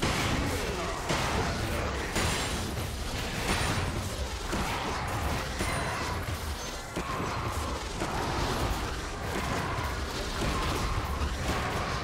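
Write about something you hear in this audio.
Game sword hits clang repeatedly.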